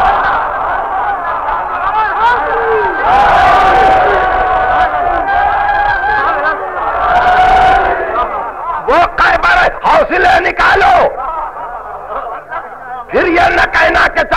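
An elderly man speaks with animation, heard through an old, worn recording.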